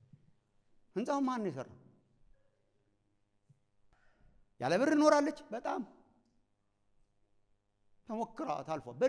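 A man speaks with emphasis through a microphone, pausing between phrases.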